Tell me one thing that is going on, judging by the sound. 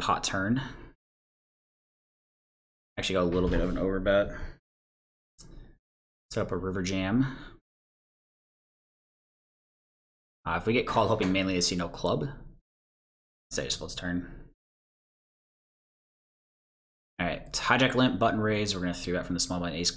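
A man talks calmly into a close microphone, in bursts with pauses.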